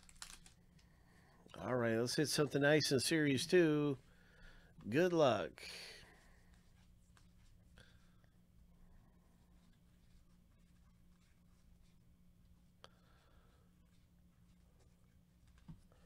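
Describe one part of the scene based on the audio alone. Trading cards slide and flick against each other as they are shuffled by hand.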